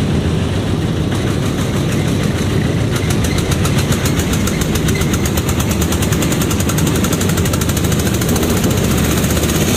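A metal frame rattles with fast, even clicks.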